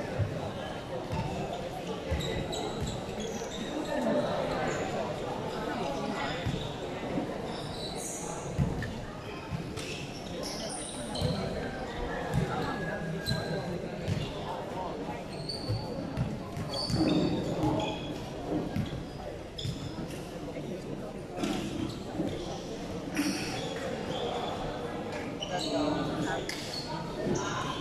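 A crowd of young people chatters throughout a large echoing hall.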